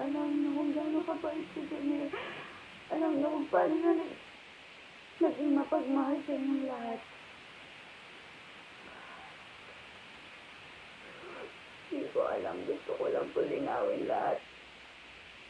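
A young woman sobs and wails emotionally close by.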